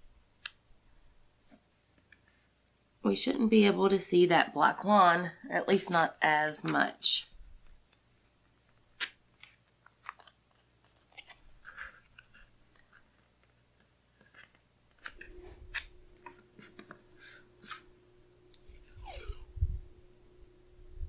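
Sticky tape tears and peels off a roll.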